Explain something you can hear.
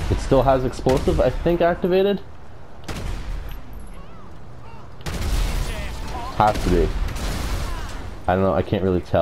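A pistol fires single shots outdoors.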